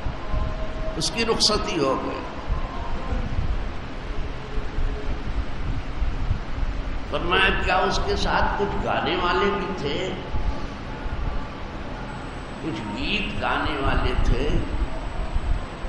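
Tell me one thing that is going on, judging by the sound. An elderly man speaks calmly into a microphone, preaching in a slow, measured voice.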